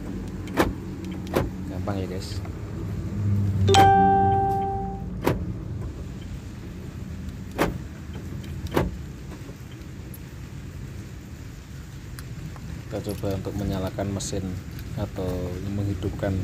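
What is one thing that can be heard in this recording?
Keys jingle and click as they are handled.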